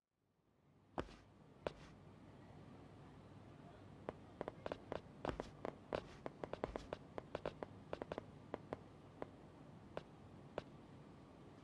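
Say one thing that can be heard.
Hard-soled footsteps click on a stone floor.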